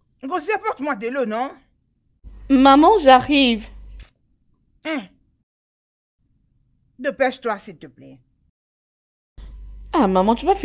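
A middle-aged woman speaks loudly with animation, close by.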